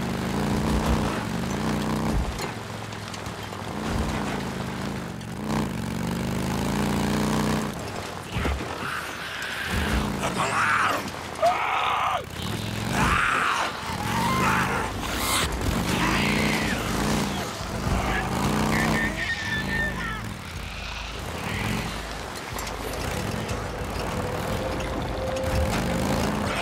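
A motorcycle engine rumbles and revs as it rides over rough ground.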